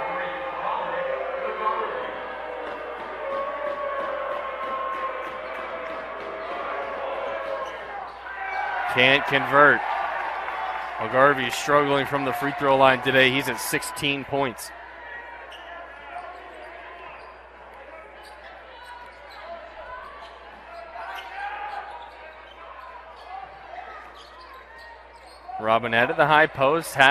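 A large crowd murmurs in an echoing gym.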